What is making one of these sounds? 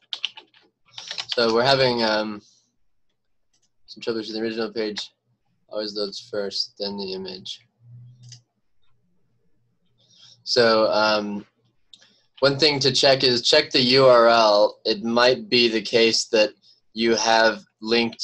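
A man talks calmly through a microphone, in short bursts with pauses.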